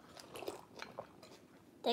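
A woman slurps a drink from a cup.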